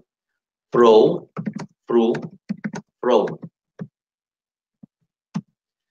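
A middle-aged man speaks calmly through a computer microphone, as on an online call.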